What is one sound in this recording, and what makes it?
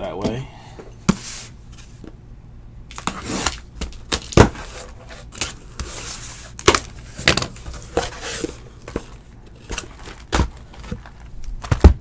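A cardboard box rustles and thumps as it is handled and opened.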